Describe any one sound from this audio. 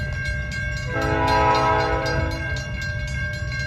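A locomotive horn sounds in the distance.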